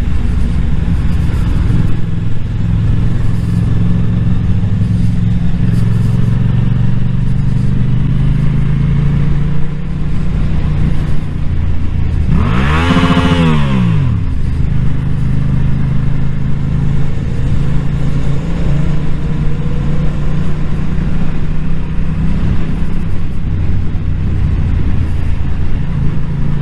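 A motorcycle engine hums steadily up close as it rides along.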